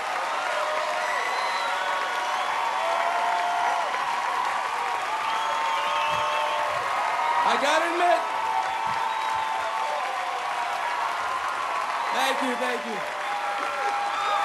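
A crowd claps steadily.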